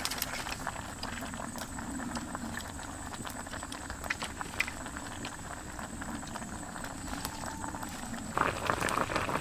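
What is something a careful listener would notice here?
Food sizzles in a hot pan over a fire.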